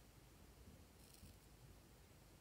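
Scissors snip through thin plastic.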